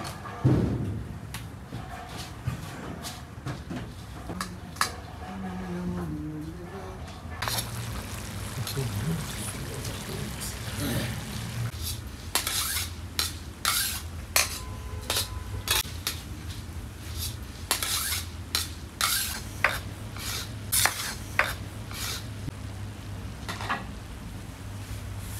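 A metal scoop scrapes and stirs rice in a large metal pan.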